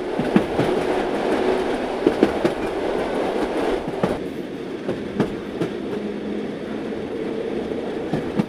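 A train rumbles as it pulls in.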